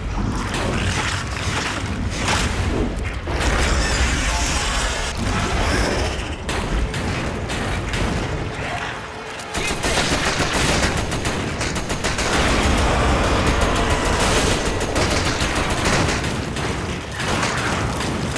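A huge creature roars and growls loudly.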